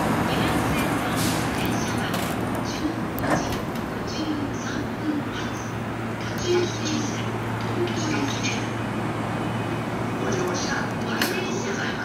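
An electric train hums steadily as it stands close by.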